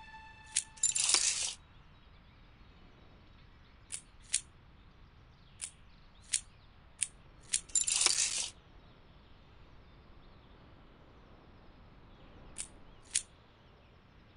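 Short clicks and chimes sound as game items are picked.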